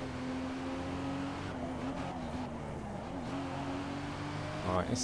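A car engine hums steadily at high revs.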